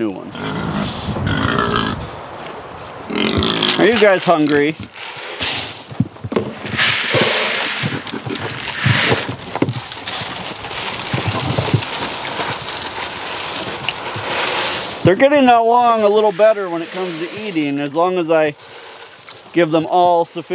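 Pigs grunt.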